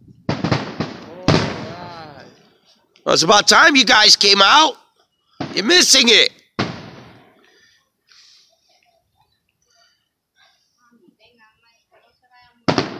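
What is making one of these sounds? Fireworks burst with loud booms that echo and fade away.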